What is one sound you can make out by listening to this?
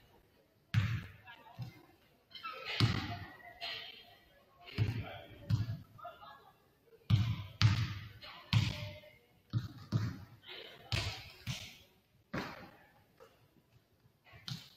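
A basketball bounces on a hardwood floor, echoing through a large hall.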